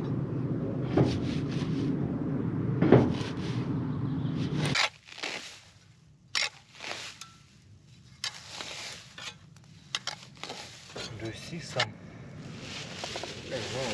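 A hand tool scrapes and scratches against a wooden wall.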